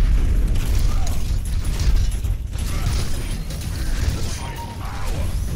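Game gunfire and blasts rattle rapidly.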